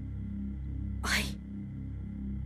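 A boy answers briefly and quietly.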